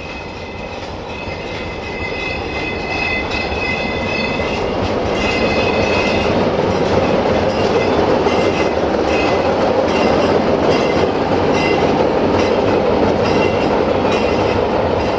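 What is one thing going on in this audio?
Steel wheels squeal on the rails.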